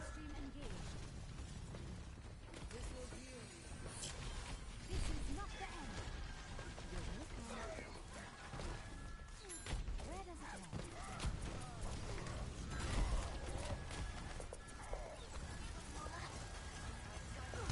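Weapons fire in bursts in a video game.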